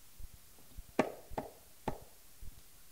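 Sharp drum slaps ring out a few times.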